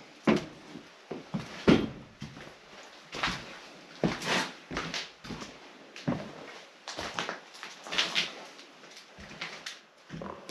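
Footsteps crunch and rustle over scattered paper and debris.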